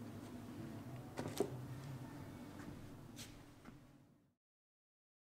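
Hands handle and tap a hard plastic object.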